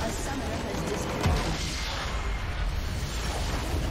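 A structure in a game shatters with a loud crash.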